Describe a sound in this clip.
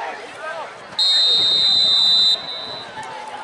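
A referee's whistle blows a long blast.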